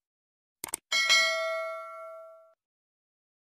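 A small bell chimes once and rings out.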